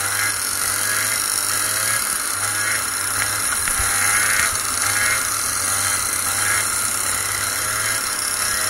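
A kart engine buzzes loudly up close, revving up and down.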